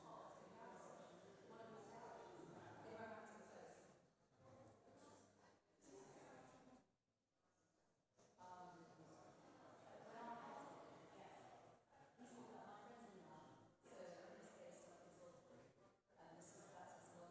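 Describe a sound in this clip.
Several men and women chat and murmur in a large echoing hall.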